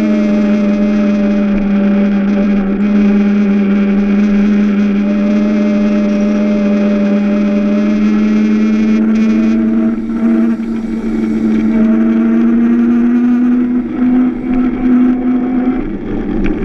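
Other karts hum nearby.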